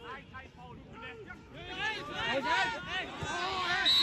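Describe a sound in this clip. A football thuds off a kick.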